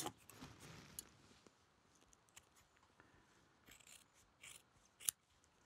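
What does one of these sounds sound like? Scissors snip through a stiff material.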